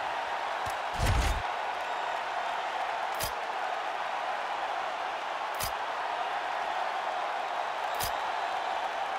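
Menu clicks sound sharply a few times.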